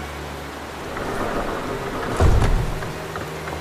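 Heavy wooden doors swing open with a loud thud.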